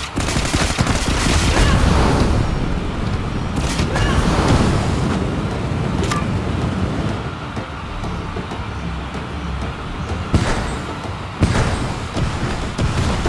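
Gunfire from a game crackles in rapid bursts.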